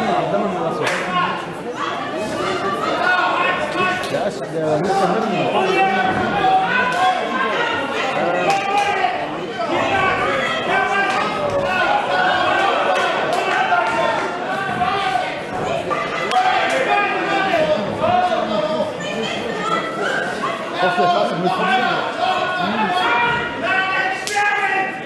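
A crowd of spectators chatters and shouts in a large hall.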